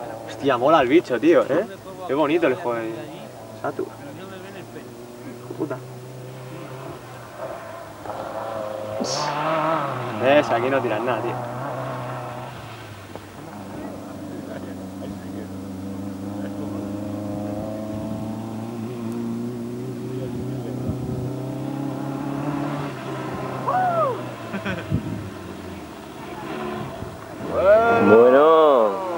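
A rally car engine revs hard and roars past close by.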